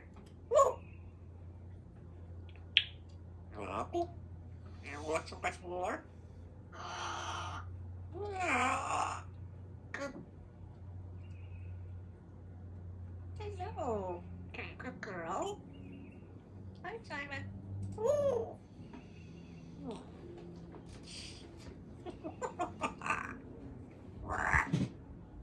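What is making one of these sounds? A parrot whistles, squawks and chatters close by.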